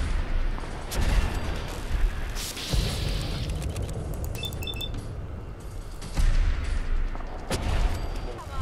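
A rifle fires loud shots.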